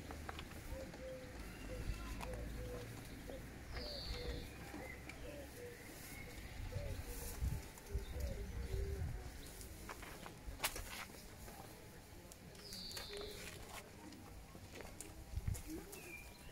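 A woman plays a few notes on a flute.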